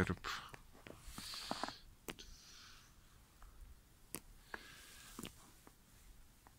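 A finger scrapes and crunches softly through snow.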